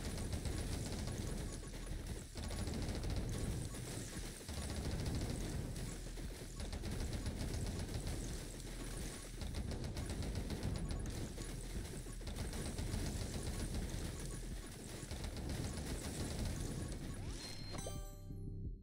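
Rapid game gunfire crackles and rattles without pause.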